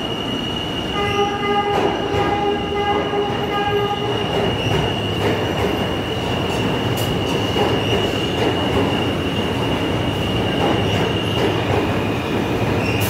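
A subway train rumbles past close by in an echoing station.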